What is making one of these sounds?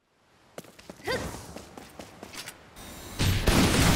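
Footsteps clack on a stone floor in an echoing hall.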